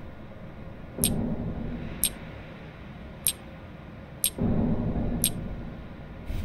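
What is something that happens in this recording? Short sharp clicks sound as items are dropped into place, one after another.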